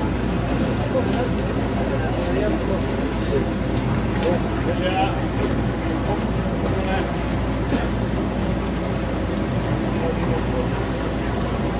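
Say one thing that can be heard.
Adults chatter nearby outdoors.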